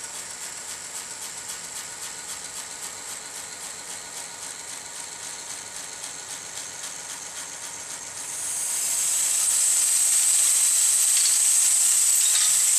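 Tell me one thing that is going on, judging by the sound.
A small model machine whirs and clicks in a quick, steady rhythm.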